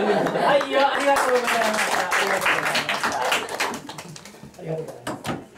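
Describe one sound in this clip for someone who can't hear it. A group of people laugh together.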